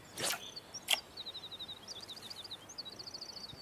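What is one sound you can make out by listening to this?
A fishing reel clicks rapidly as line is wound in.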